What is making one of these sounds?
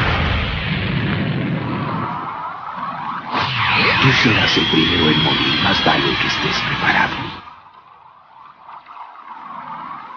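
A man growls through clenched teeth.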